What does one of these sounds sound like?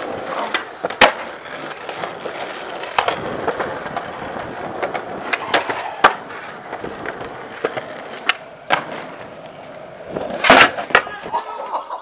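A skateboard snaps and clatters as it lands.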